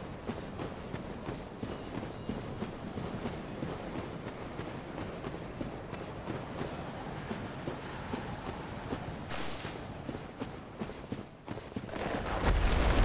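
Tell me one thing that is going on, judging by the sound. Armoured footsteps thud quickly on soft ground.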